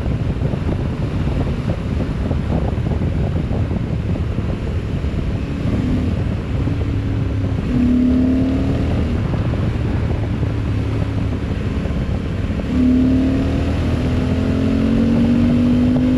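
Wind buffets loudly against a microphone.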